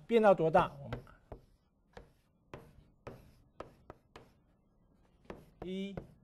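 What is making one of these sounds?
A man speaks calmly in a lecture voice.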